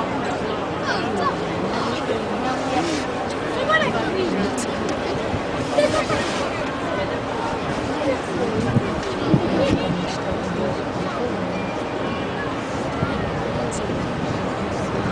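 A large ship's engines rumble low as it glides slowly past.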